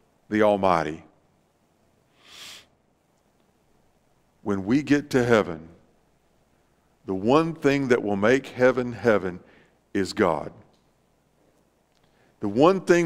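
A middle-aged man speaks with animation in short bursts, heard through a microphone in a large room.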